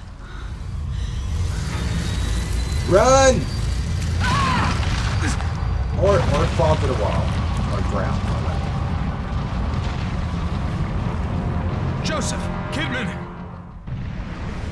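A deep rumbling roar of a structure collapsing fills the space.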